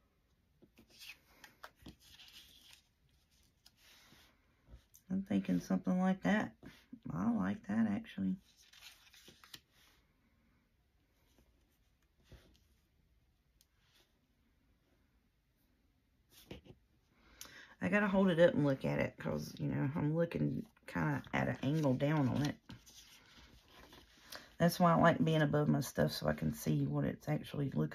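Paper rustles and crinkles softly as hands fold and press it.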